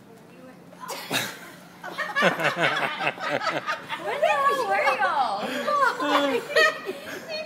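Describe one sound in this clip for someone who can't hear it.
A middle-aged woman shrieks with joy close by.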